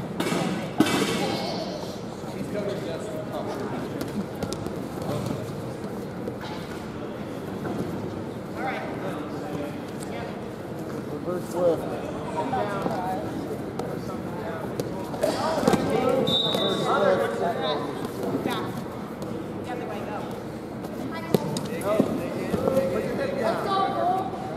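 Wrestlers thud and scuff on a mat.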